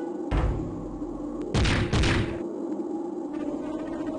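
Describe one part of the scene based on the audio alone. A fighter's body thuds onto the ground.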